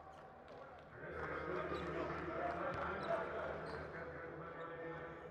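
A crowd cheers and roars in a large echoing arena.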